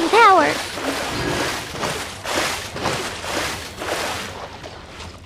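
Water splashes with each step of someone wading through shallows.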